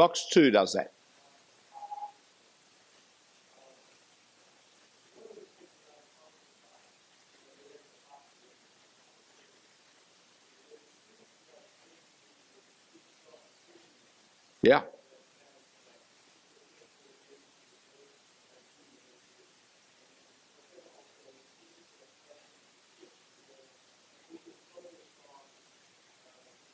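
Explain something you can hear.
An elderly man speaks calmly into a microphone, quietly and in short bursts with pauses.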